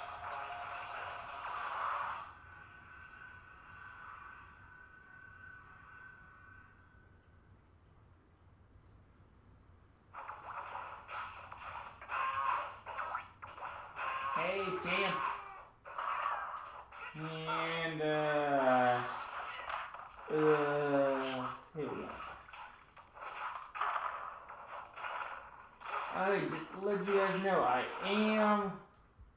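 Upbeat video game music plays through a small, tinny speaker.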